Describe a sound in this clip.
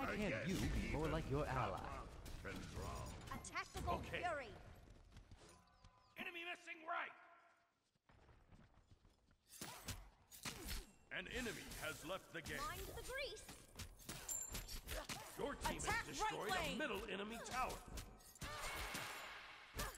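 Magic blasts burst and crackle in a fight.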